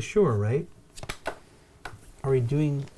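Small game pieces tap onto a board.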